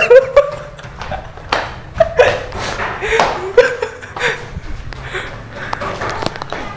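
A young man laughs loudly and heartily close by.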